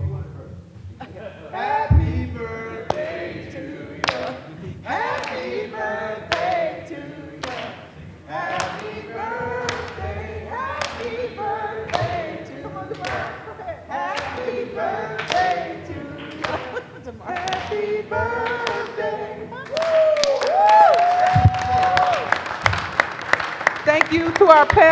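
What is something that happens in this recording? A crowd sings together in a large echoing hall.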